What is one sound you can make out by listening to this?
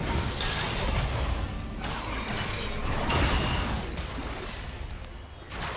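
Magical blasts whoosh and crackle in a fast fight.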